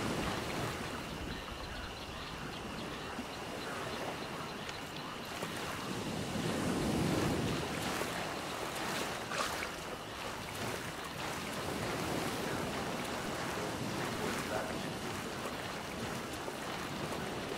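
Water sloshes and splashes as someone wades through it.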